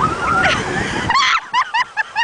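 Water splashes loudly as a boy dives into the surf.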